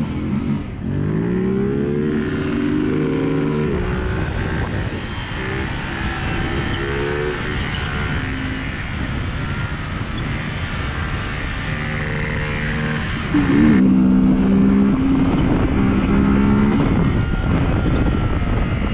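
A motorcycle engine revs up and down close by.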